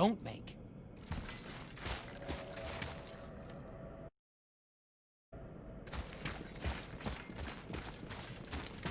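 Heavy footsteps thud slowly on stone.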